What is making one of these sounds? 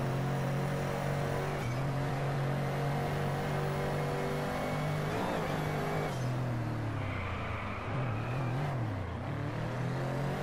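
A car engine roars steadily, its pitch shifting up and down.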